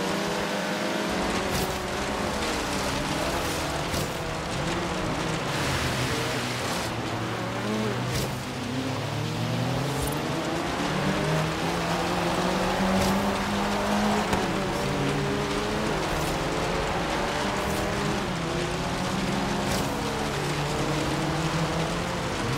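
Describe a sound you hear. A car engine revs hard and shifts gears as it races.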